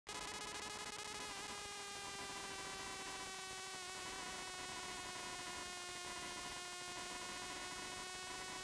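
A race car engine roars loudly at high revs, its pitch slowly dropping.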